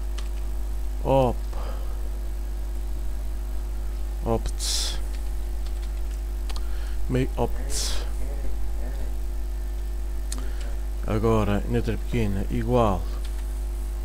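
A man speaks calmly in short phrases into a close microphone.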